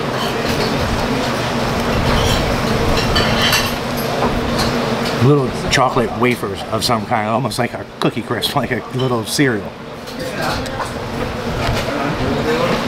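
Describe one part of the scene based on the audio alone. People chatter steadily in the background.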